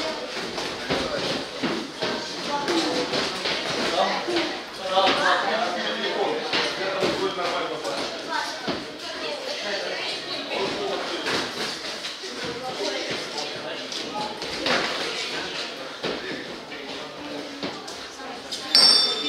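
Gloves thud against bodies and gloves in quick bursts.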